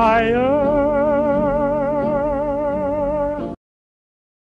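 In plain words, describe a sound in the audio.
A cartoon character's voice wails a wavering, warbling note.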